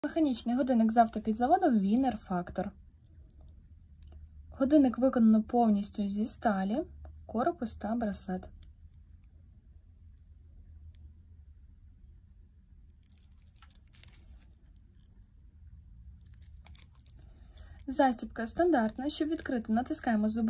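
A metal watch bracelet clinks lightly.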